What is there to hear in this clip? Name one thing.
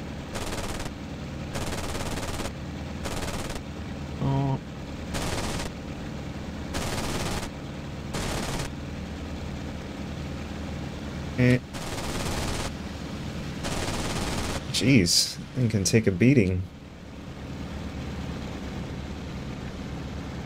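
A propeller warplane's engine drones from inside the cockpit.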